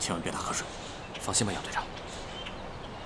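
A young man answers in a low voice.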